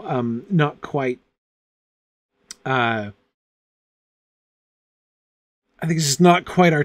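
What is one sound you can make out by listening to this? A middle-aged man reads aloud expressively into a close microphone, with pauses.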